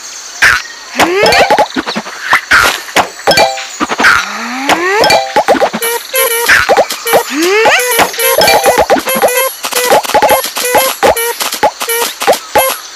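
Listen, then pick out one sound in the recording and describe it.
Game bubbles pop in quick bursts of bright chimes.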